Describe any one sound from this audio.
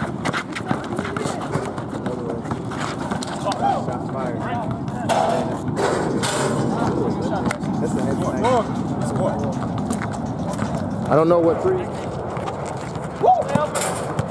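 A basketball bounces on hard pavement.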